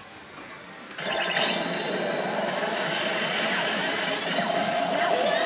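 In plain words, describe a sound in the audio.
A slot machine plays loud electronic music and jingles.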